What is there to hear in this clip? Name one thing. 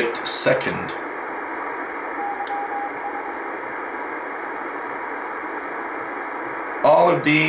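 Static hisses steadily from a radio receiver's loudspeaker.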